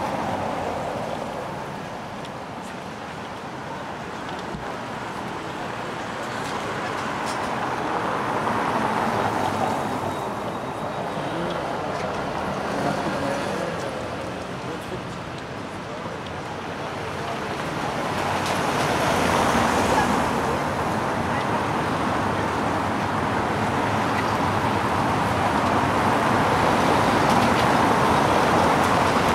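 Car tyres hiss on wet cobblestones as traffic passes.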